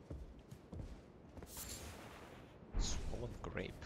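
Armoured footsteps crunch over rubble.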